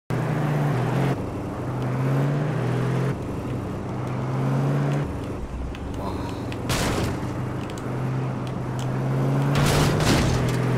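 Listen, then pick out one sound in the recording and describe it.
A truck engine revs and labours as it climbs.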